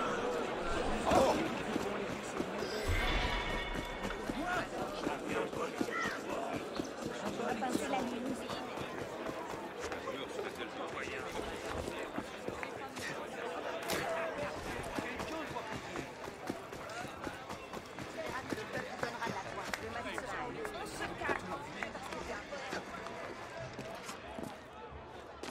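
Footsteps patter quickly on stone and gravel.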